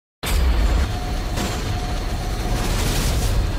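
Flames burst and roar loudly.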